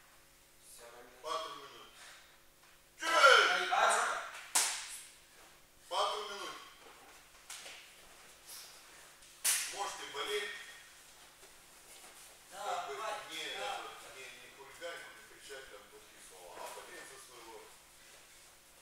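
A young man talks loudly in a large echoing hall.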